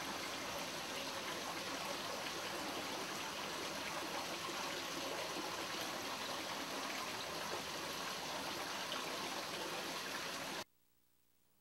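Water trickles steadily into a pond.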